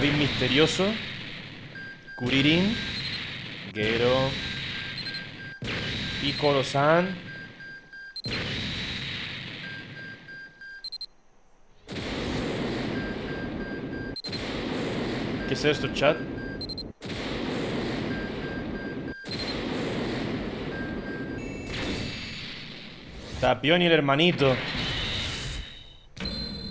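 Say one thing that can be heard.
Electronic game music and effects play.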